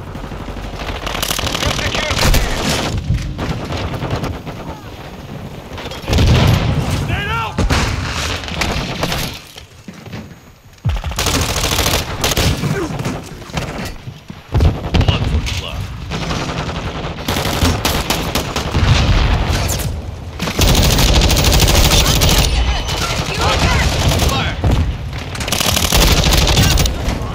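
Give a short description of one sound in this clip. Automatic rifle fire bursts out in a video game.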